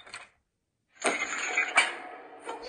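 Heavy chains rattle and clank loudly against a door.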